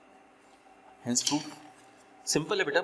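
A sheet of paper rustles as it is turned.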